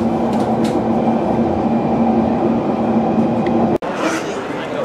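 A train rumbles along the tracks with a steady drone.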